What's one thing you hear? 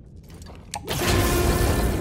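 An electric charge crackles and buzzes loudly.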